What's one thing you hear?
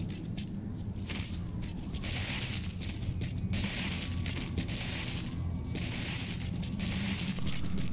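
Footsteps rustle softly through grass.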